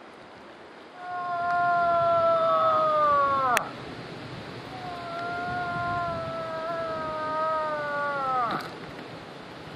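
A man nearby makes two long, loud calls that slide down in pitch.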